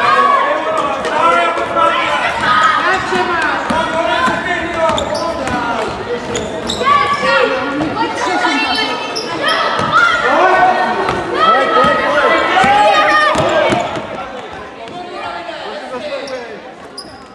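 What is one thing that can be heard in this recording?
Children shout and cheer loudly in a large echoing hall.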